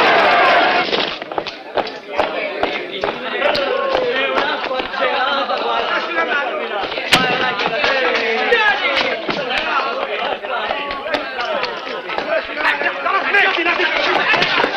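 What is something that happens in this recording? Feet stamp and shuffle on a hard floor.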